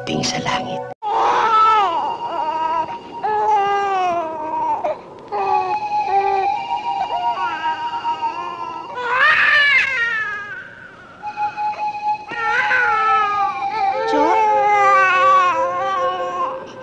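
A baby cries loudly in long, wailing sobs.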